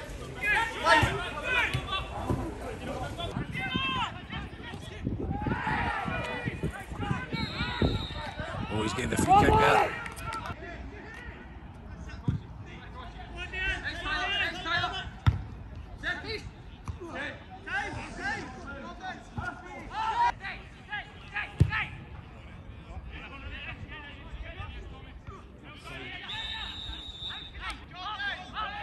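Men shout and call out to each other across an open pitch outdoors.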